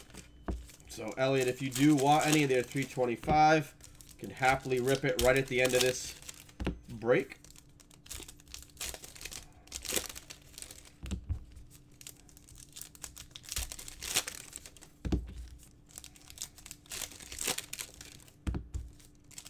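A foil card wrapper crinkles as hands tear it open.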